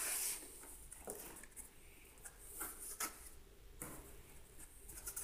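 Packing inside a cardboard box rustles and creaks as hands dig in.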